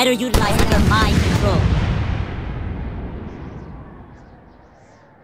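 An explosion booms loudly and its rumble slowly fades away.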